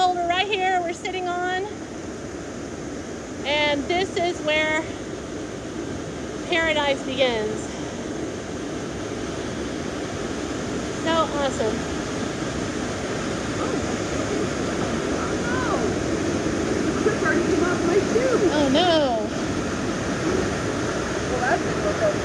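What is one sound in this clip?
Water rushes and splashes steadily outdoors, growing louder toward the end.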